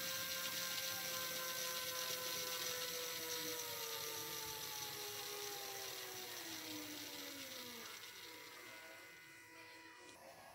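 A small electric motor whines and slowly winds down to a stop.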